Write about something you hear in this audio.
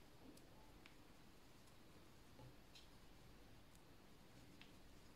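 A plastic crochet hook works through yarn with faint soft ticks.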